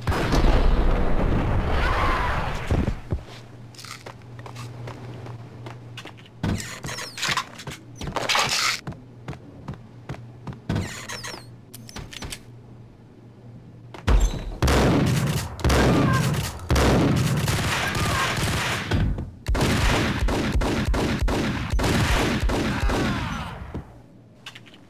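Gunshots boom loudly with an echo.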